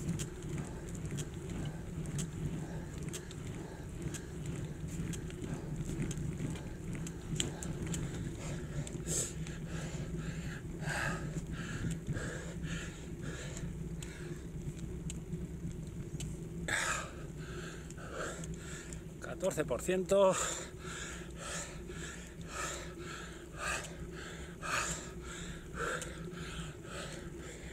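Bicycle tyres hum steadily on a paved road.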